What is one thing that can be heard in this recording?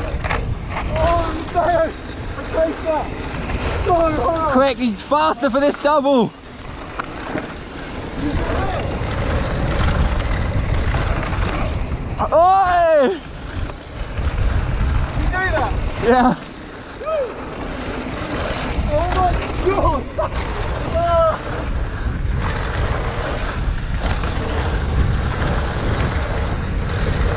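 Bicycle tyres roll and crunch over loose dirt and gravel.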